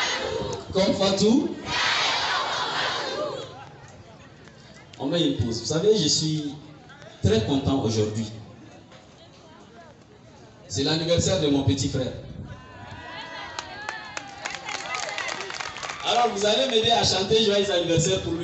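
A man speaks loudly into a microphone through a loudspeaker outdoors, in bursts with pauses.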